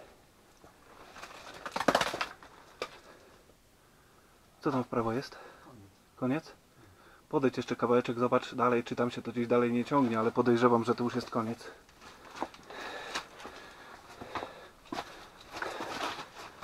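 Loose rocks crunch and shift under a man's boots.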